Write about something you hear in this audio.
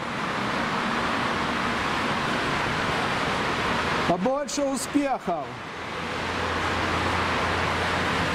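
Traffic hums steadily on a wide road below.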